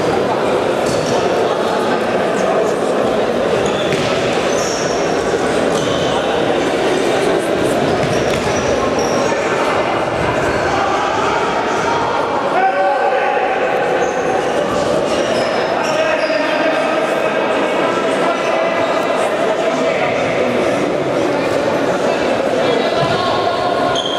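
A ball thuds when kicked.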